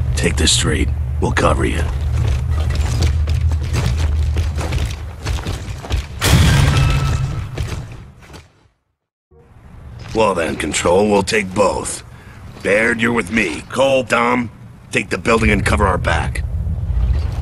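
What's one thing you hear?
A man speaks firmly, giving orders.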